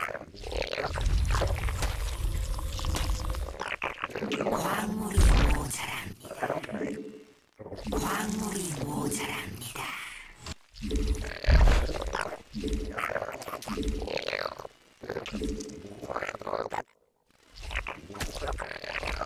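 A young man talks quickly and with animation.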